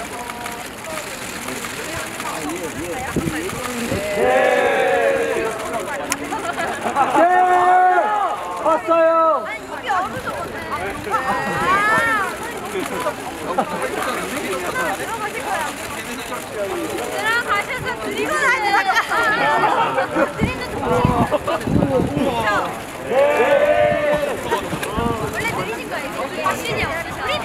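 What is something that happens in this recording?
Young women chat cheerfully close by.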